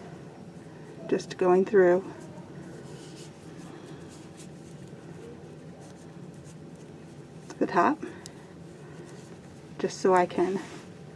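A cord rustles softly as it is pulled through a knot.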